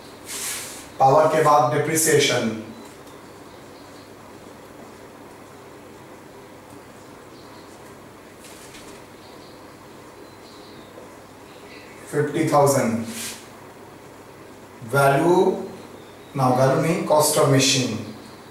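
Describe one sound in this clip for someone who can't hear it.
A man speaks calmly, with long pauses.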